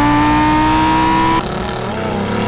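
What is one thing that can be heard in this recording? A sports car engine roars loudly at high revs nearby.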